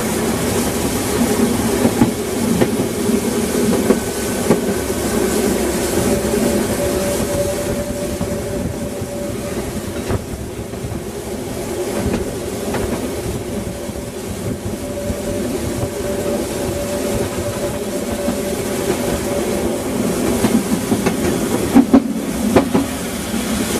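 A steam locomotive chuffs rhythmically up ahead.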